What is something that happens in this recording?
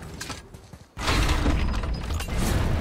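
A heavy stone mechanism clunks into motion.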